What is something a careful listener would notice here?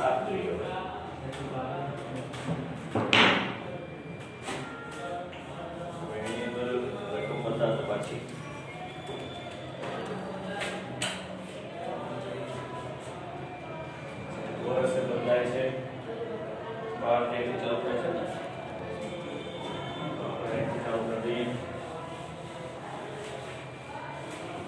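A man speaks calmly nearby, in a room with some echo.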